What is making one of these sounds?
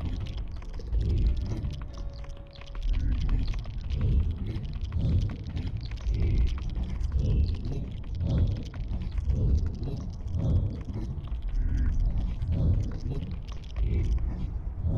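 A huge creature's heavy footsteps thud in a slow, steady rhythm.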